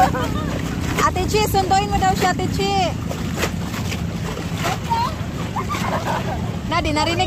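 Water splashes and laps as swimmers paddle.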